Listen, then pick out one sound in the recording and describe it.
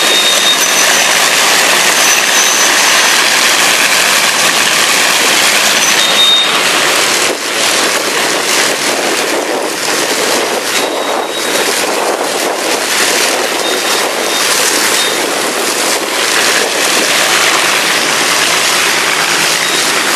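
The propeller engines of a large aircraft roar loudly up close as it taxis past.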